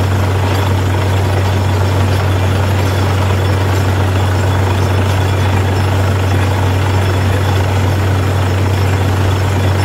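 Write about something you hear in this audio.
A drilling rig's diesel engine drones loudly and steadily.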